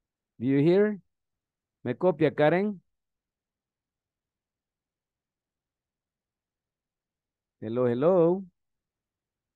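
A man speaks in short phrases over an online call.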